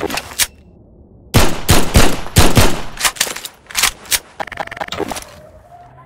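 A pistol fires several quick, sharp shots.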